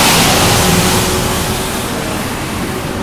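A street sweeper rumbles past close by.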